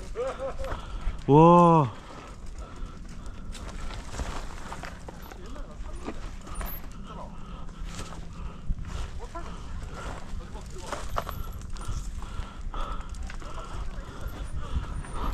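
A bicycle frame rattles and clanks over bumps.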